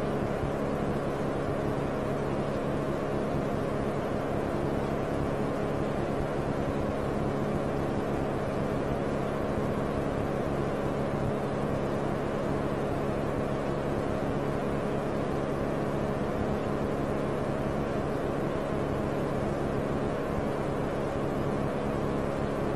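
A cassette tape whirs steadily as its reels turn.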